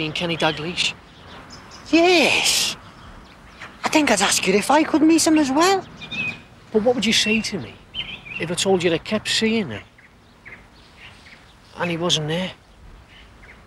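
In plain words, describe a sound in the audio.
A young man speaks tensely up close.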